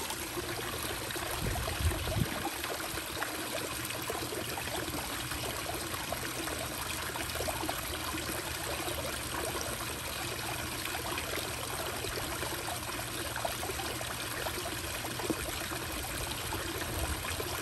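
Water trickles and splashes steadily down a rock fountain into a pond.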